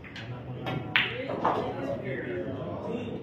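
Pool balls knock together.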